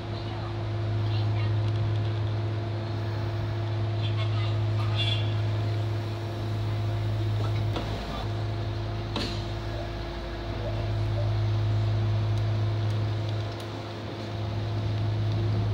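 A train's motor hums steadily from inside the cab.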